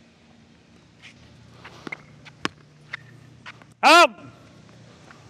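Tennis balls are struck with a racket with sharp pops.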